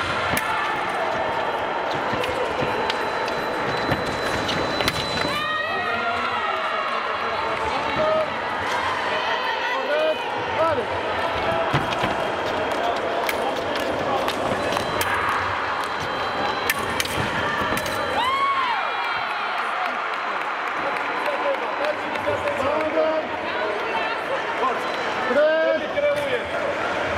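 Shoes squeak and thud on the fencing strip.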